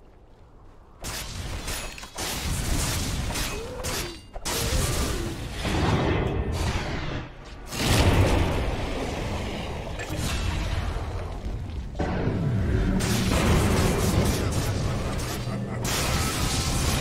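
Game spells crackle and blast in quick bursts during a fight.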